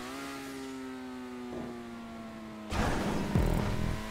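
A car's suspension thuds as the car lands hard.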